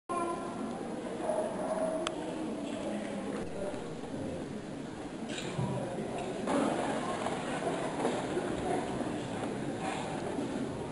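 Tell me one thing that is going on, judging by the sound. A large crowd of men and women sings together in a large echoing hall.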